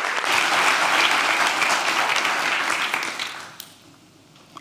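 An audience claps in a large hall, and the applause dies away.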